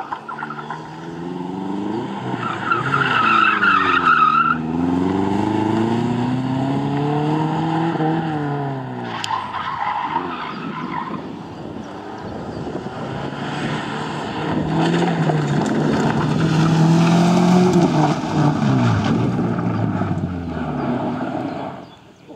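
Tyres skid and scrabble on loose gravel.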